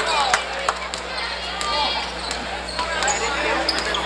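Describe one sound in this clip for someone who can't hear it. A basketball thumps as it bounces on the floor.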